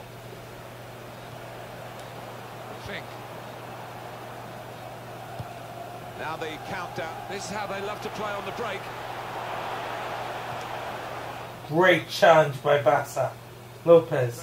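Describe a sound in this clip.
A stadium crowd murmurs steadily and swells.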